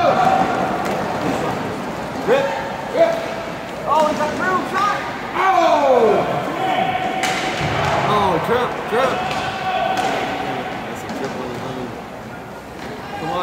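Skate wheels roll and scrape across a hard floor.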